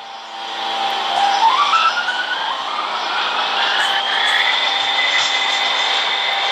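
A subway train's motors whine, rising in pitch as the train speeds up.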